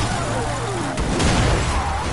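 A car engine rumbles.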